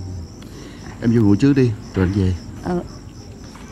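A man speaks in a low voice, close by.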